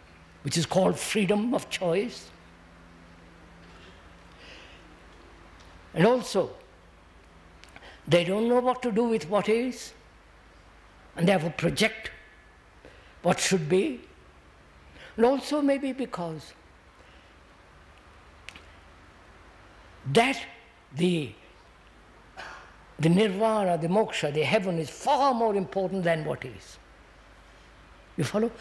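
An elderly man speaks slowly and deliberately into a nearby microphone, with long pauses.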